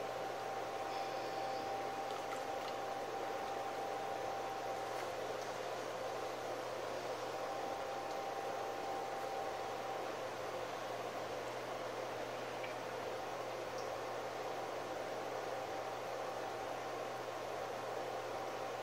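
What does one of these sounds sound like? Wet clay squelches softly under hands.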